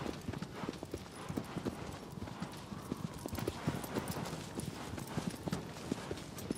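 A horse gallops, its hooves thudding rapidly on grass.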